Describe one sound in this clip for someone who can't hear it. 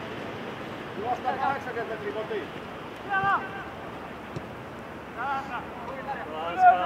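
Men shout to each other across an open outdoor field, some distance away.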